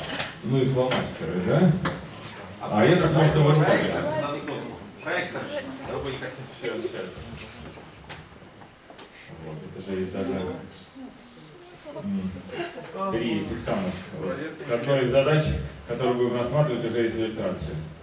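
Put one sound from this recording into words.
A second man talks with animation, answering the first.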